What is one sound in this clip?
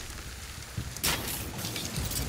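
An arrow is released from a bow with a sharp twang.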